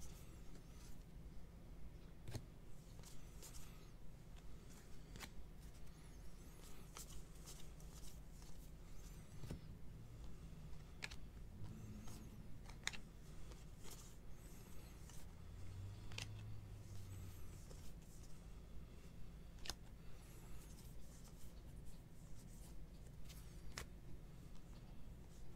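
Trading cards flick and slide against each other as they are shuffled by hand.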